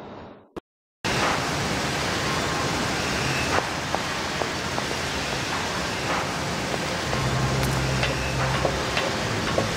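Heavy machinery hums steadily in a large echoing hall.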